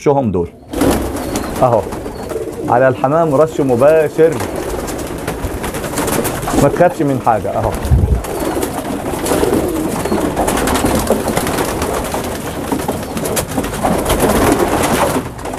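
Pigeons flap their wings.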